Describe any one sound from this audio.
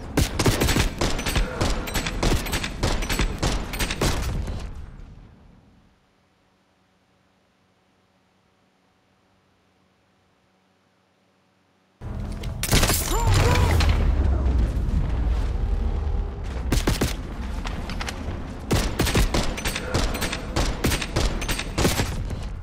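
Gunshots fire in rapid bursts close by.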